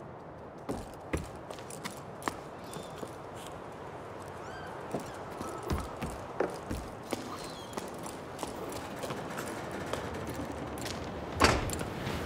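Wooden planks knock and clatter as a person climbs.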